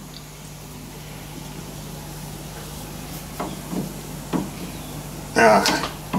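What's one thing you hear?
A metal key clicks as a lathe chuck is tightened.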